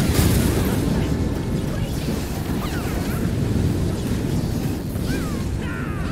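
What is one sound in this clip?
Magic blasts explode and crackle in quick succession.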